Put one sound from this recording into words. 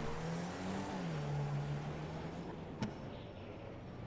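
A car engine hums as the car drives along.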